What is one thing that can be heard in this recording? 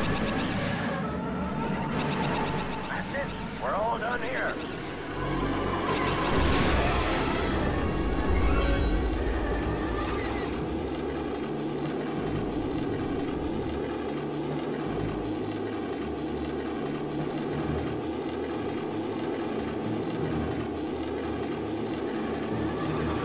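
A spaceship's engine hums as it flies.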